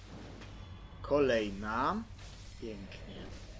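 A sword strikes with a sharp metallic clang and crackling sparks.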